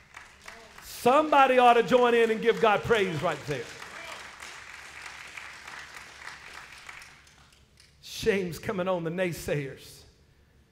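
A man preaches with feeling into a microphone in a large echoing hall.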